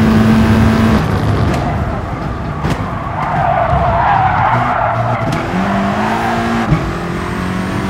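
The racing car engine winds down as the car brakes, then revs back up.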